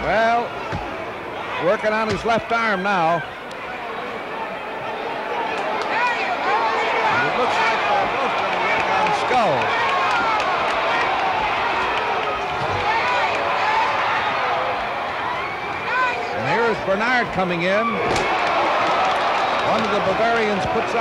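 A large indoor arena crowd clamours and shouts.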